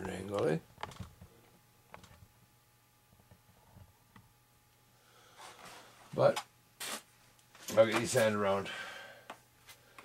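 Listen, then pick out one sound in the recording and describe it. Light foam pieces rustle and tap as they are handled.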